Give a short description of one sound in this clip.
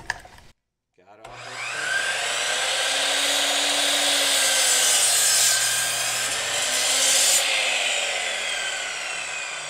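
A miter saw motor whirs loudly and steadily.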